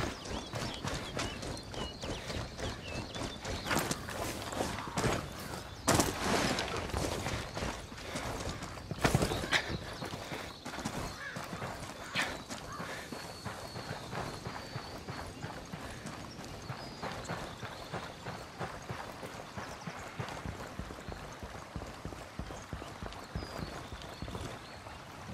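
Footsteps crunch steadily on dirt and thud on wooden boards.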